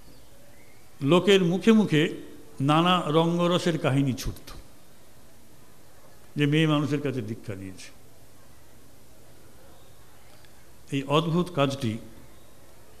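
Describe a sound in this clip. A middle-aged man speaks slowly and deliberately into a microphone, with pauses between phrases.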